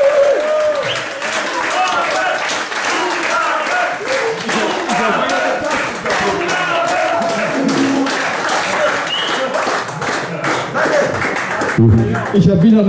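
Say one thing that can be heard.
A man sings into a microphone over the band.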